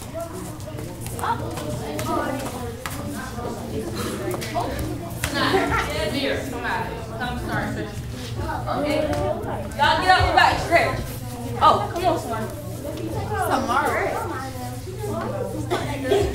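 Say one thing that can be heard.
Bare feet thump on a wooden floor.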